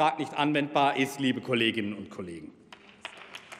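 A young man speaks formally into a microphone.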